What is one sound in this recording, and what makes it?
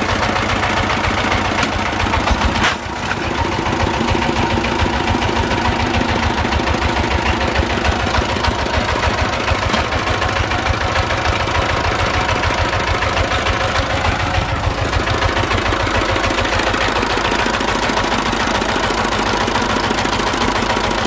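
A single-cylinder diesel engine chugs loudly and steadily close by.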